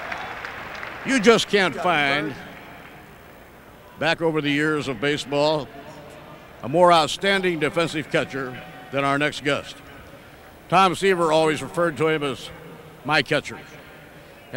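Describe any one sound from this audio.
A middle-aged man speaks calmly and cheerfully, close to a microphone.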